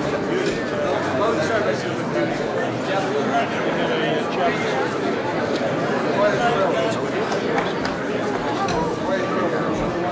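A crowd of men and women chatters all around in a busy room.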